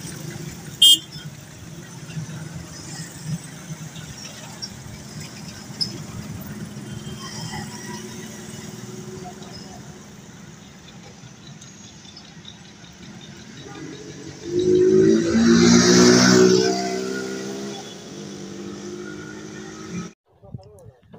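Traffic hums along a road outdoors.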